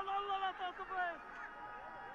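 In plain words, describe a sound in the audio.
A young man calls out loudly across an open field.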